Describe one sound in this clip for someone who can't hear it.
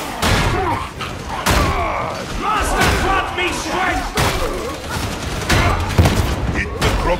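A heavy weapon slashes and thuds into bodies again and again.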